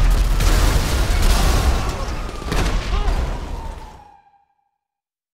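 A car explosion booms loudly.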